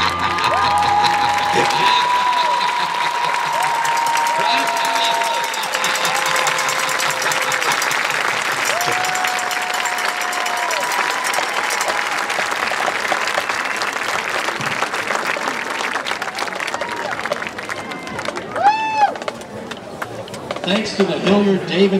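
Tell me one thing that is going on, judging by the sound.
Spectators whistle shrilly.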